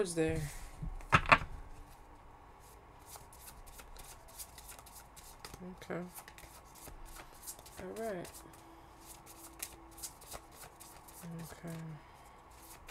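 Playing cards are shuffled and tapped on a table.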